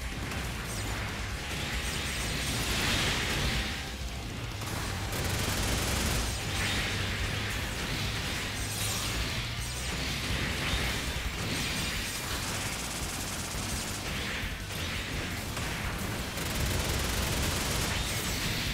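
A robot's energy sword slashes and clangs in combat.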